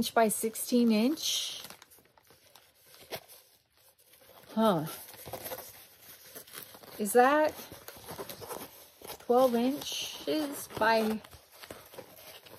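A paper poster crinkles and rustles as it is unrolled.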